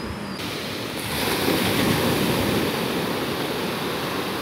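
Waves wash up on the shore.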